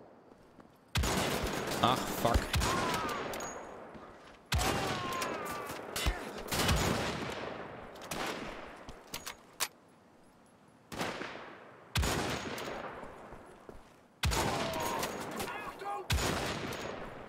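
Rifle shots crack loudly, one after another, with a ringing echo.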